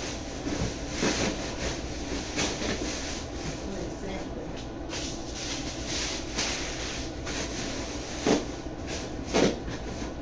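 Cardboard bumps and scrapes against a surface.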